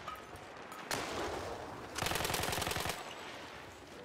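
An explosion booms nearby and roars on.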